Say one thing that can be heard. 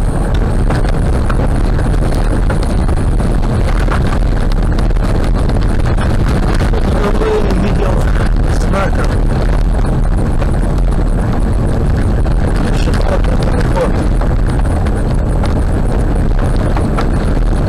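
A car drives steadily along a gravel road, its engine humming.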